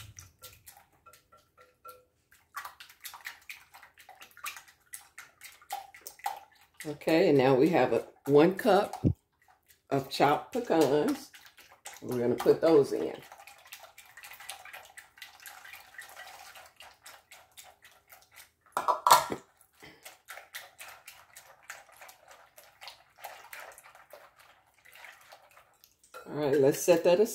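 A spoon stirs and scrapes through thick batter in a glass bowl.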